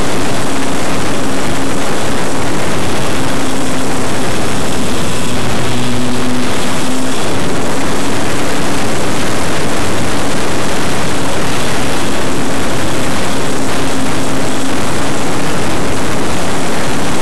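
Wind rushes loudly past a model airplane in flight.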